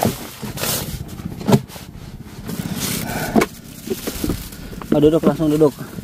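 A plastic bag crinkles.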